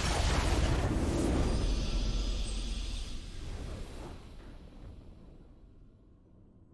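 A triumphant game fanfare swells and slowly fades.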